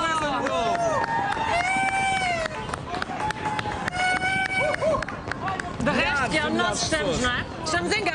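A large crowd cheers outdoors.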